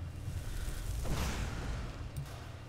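A burst of fire whooshes.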